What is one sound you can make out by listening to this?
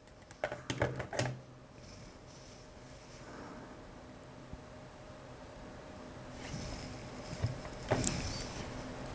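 A plastic game controller clicks into a charging dock.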